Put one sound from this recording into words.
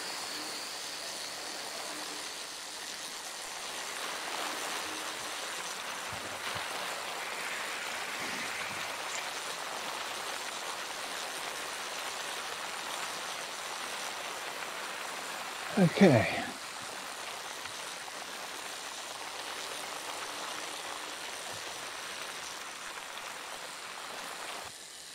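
A bike trainer whirs steadily as a man pedals.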